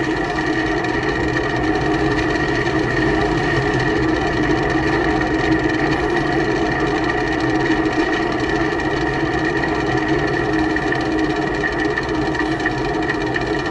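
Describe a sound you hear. Tyres roll over a paved road.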